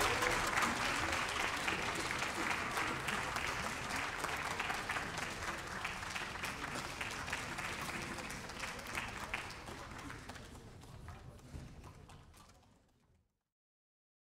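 A large audience applauds in a big hall and the applause slowly fades away.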